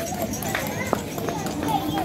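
A horse's hooves clop on a paved street.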